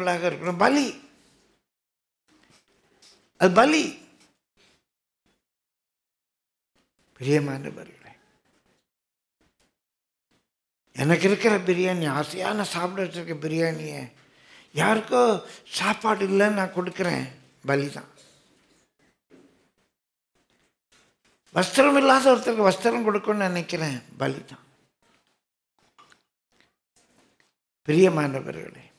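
An elderly man speaks slowly and earnestly through a microphone, with long pauses.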